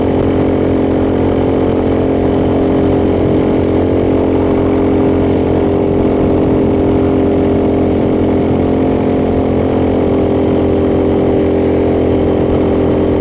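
A motorcycle engine hums steadily while riding at an even speed.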